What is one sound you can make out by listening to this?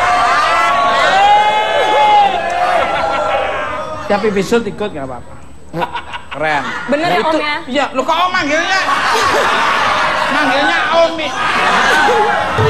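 A young woman laughs heartily.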